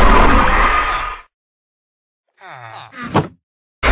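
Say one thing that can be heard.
A wooden chest lid thuds shut.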